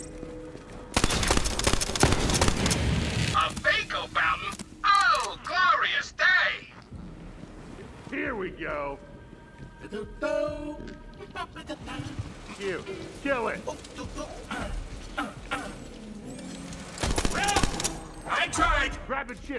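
Gunfire bursts loudly in short rapid volleys.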